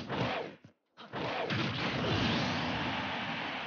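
A sharp whoosh sweeps past.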